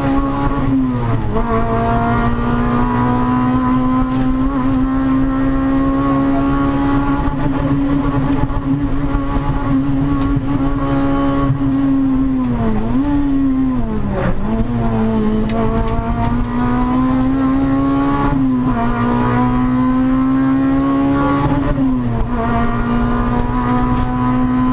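Tyres rumble over a rough country road.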